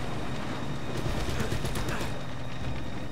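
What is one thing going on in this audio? Footsteps run on a hard deck.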